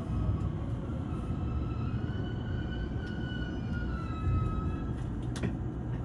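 Train brakes squeal as the train comes to a stop.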